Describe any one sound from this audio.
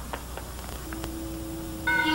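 Footsteps fall slowly on a hard floor.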